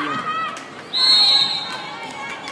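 A referee's whistle blows shortly.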